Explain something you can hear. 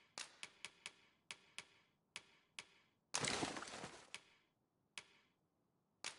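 Short game menu clicks tick one after another.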